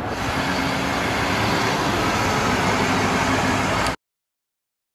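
A car engine runs close by.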